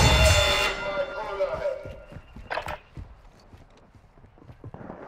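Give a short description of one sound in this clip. Footsteps thud quickly on gravel as someone runs.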